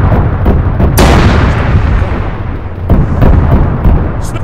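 A vehicle explodes with a loud blast.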